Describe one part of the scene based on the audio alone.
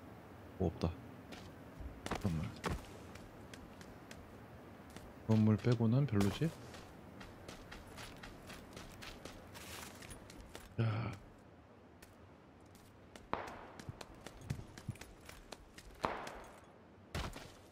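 Quick footsteps thud and scuff on the ground.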